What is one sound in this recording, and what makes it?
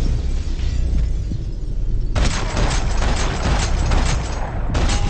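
Loud club music thumps with a deep bass.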